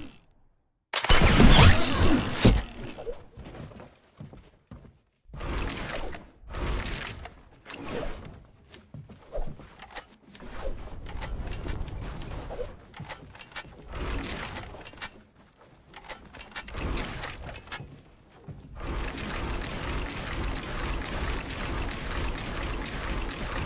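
Video game building pieces snap into place with quick thuds and clicks.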